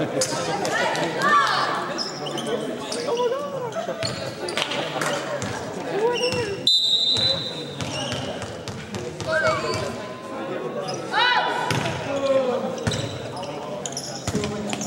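Young girls shout and cheer in a large echoing gym.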